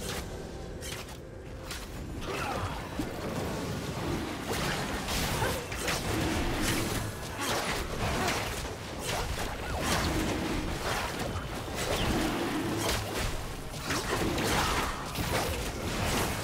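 Game spell effects and blows crash rapidly during a fight.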